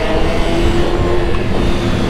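Another motorcycle engine revs as it passes close by.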